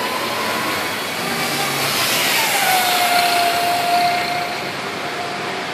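A bus passes close by with a rising and falling hiss.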